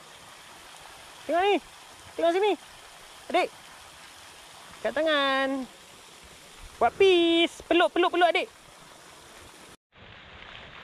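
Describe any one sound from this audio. A fountain splashes steadily in the distance.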